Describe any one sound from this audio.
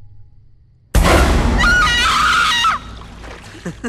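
A young woman screams loudly and close by.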